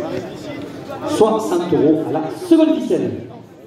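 Young men shout nearby, loud and excited.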